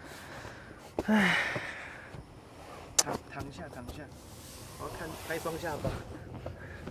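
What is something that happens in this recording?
Bedding rustles as a man climbs into a car.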